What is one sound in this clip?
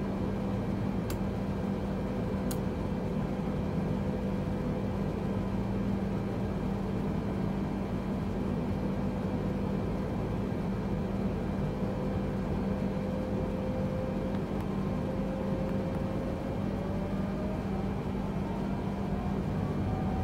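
Air rushes steadily past the cockpit.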